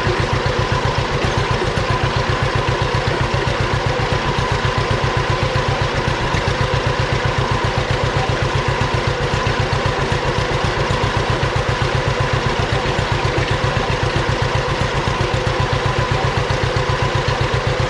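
An old tractor engine chugs steadily close by.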